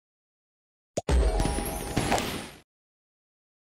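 A bright, sparkling chime rings out.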